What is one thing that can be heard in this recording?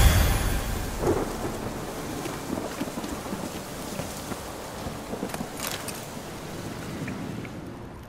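Footsteps crunch softly on rough ground.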